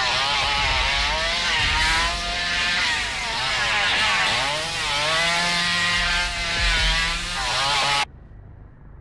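A chainsaw engine roars and revs up and down.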